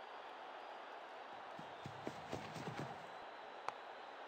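A bat strikes a cricket ball with a sharp crack.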